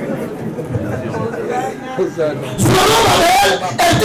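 Men laugh.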